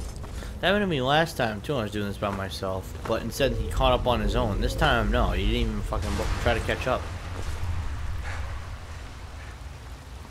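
Water rushes and splashes through a cave.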